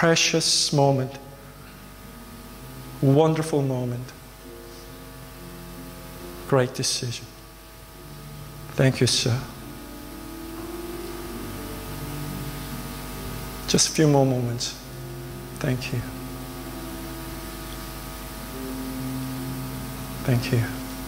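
A keyboard plays soft, steady chords.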